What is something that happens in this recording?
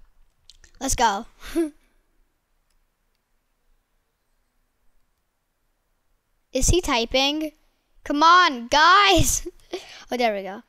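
A boy talks with animation into a headset microphone, close up.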